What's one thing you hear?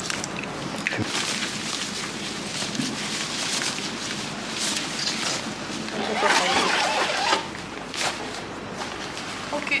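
A plastic sheet rustles as it is pulled.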